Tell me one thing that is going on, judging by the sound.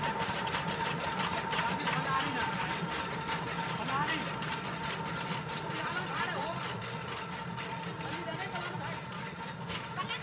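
A chaff cutter whirs and chops green stalks.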